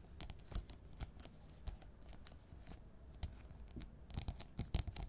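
Fingertips tap and scratch softly on a wooden surface, close up.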